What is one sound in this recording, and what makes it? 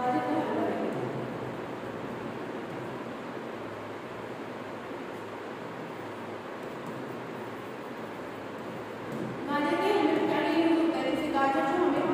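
A marker squeaks and taps as it writes on a whiteboard.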